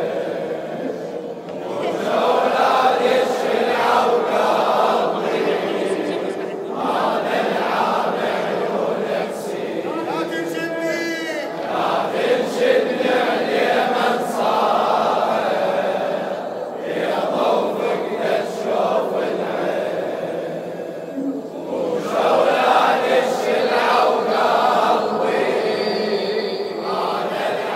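A man sings a lament into a microphone over a loudspeaker.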